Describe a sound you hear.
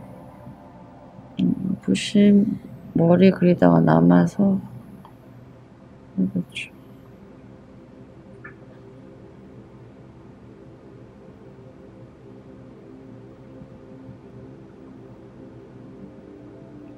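A paintbrush softly strokes across paper.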